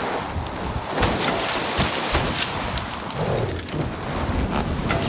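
Skis hiss and scrape steadily over snow.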